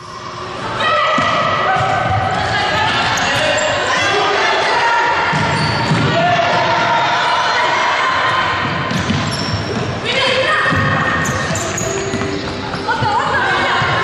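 Young women shout to each other across the court.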